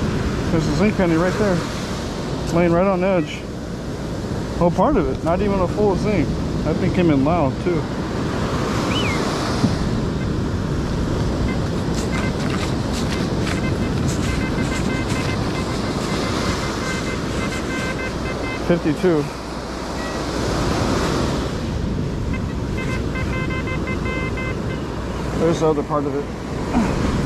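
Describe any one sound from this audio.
A metal detector gives warbling electronic tones.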